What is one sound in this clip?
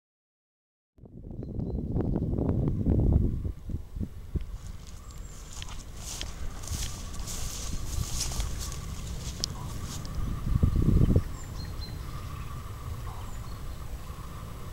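Wind rumbles and gusts outdoors across an open field.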